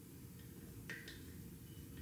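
A spoon scrapes and stirs a thick mixture in a metal bowl.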